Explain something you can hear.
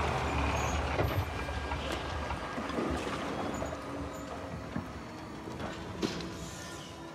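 Metal clanks now and then as a diver climbs down a ladder.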